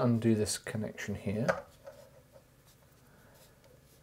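A soldering iron is set down with a light clack in its holder.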